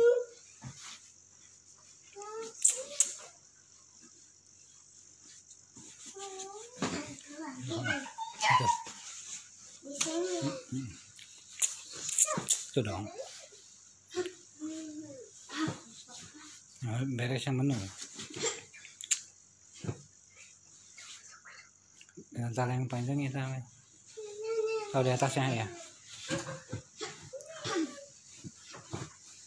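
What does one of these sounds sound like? A young child chatters and babbles close by.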